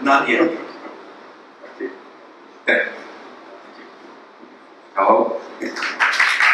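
A middle-aged man speaks through a microphone in a large echoing hall.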